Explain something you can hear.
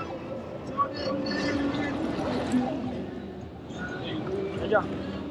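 Shallow waves wash and fizz over sand.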